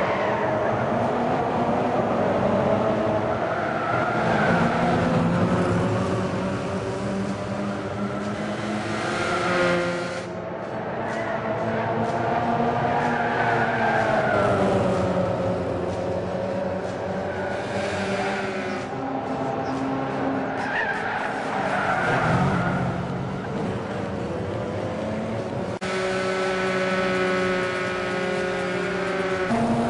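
Racing car engines roar and whine as they speed past.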